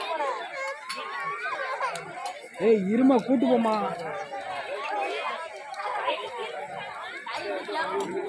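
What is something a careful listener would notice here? A crowd of men, women and children chatters and calls out nearby outdoors.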